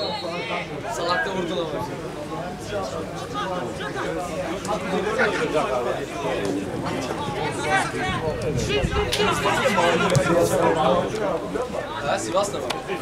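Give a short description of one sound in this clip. Men's voices chatter and call out close by throughout.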